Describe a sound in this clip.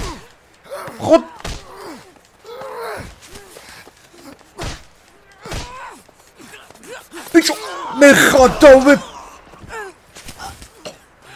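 A man talks and shouts with animation close to a microphone.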